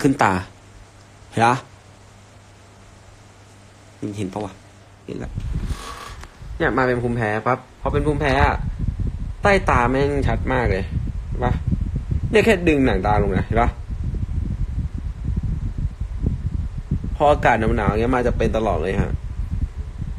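A young man talks casually, close to a phone microphone.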